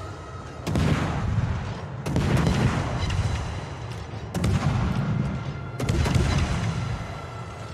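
Heavy naval guns fire in booming salvos that rumble away.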